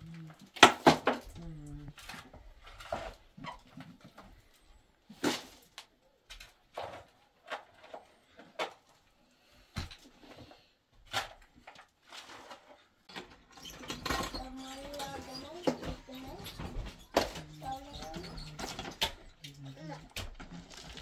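A shovel scrapes and thuds into loose dirt, close by.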